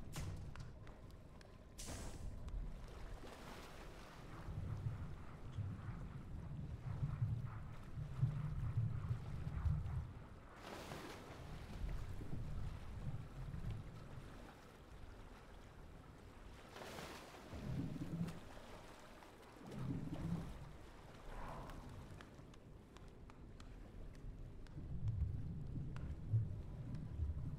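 Water rushes and splashes.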